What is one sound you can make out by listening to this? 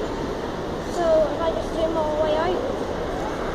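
A child calls out nearby.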